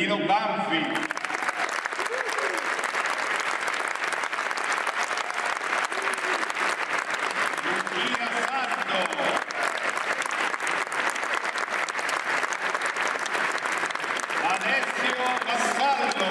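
A large audience claps and applauds loudly in an echoing hall.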